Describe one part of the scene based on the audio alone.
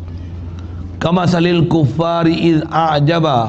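An elderly man speaks calmly and loudly through a microphone.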